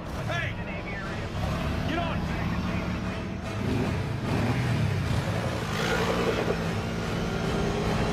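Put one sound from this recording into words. A quad bike engine revs nearby.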